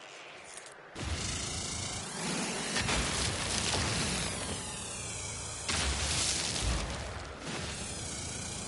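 A mining laser buzzes and whines in bursts.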